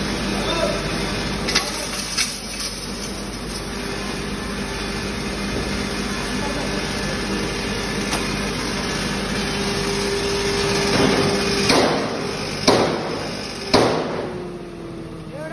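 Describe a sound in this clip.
Material rattles and clatters through a grinding mill.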